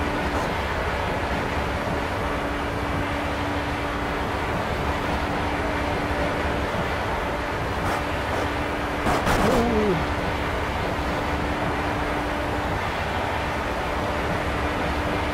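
An open-wheel racing car's engine drones at high speed.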